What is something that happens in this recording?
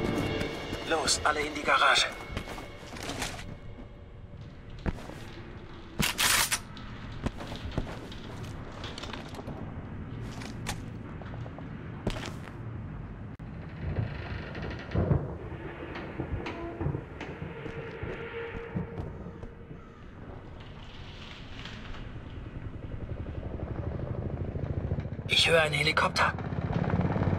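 Rifle shots crack in short bursts, with an echo after each one.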